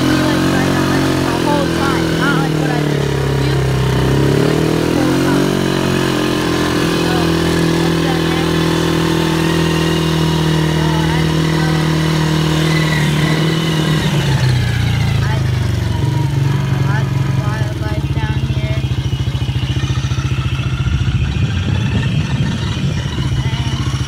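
A quad bike engine runs and revs up and down close by.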